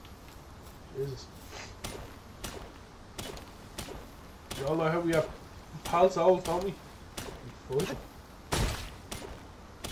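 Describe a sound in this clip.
A pickaxe chips at stone with sharp knocks.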